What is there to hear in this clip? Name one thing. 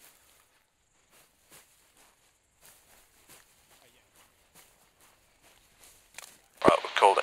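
Footsteps rustle softly through dry grass.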